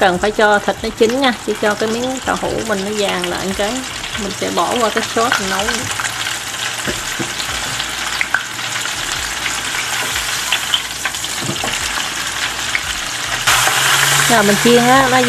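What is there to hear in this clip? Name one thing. Oil sizzles and crackles steadily as food deep fries.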